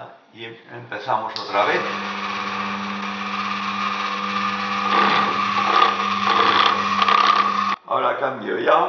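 A lathe motor hums steadily.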